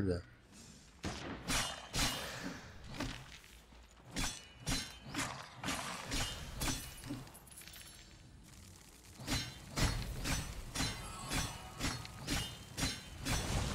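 Weapon strikes clash and thud repeatedly.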